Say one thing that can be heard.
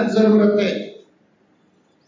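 A man speaks loudly and with feeling into a microphone.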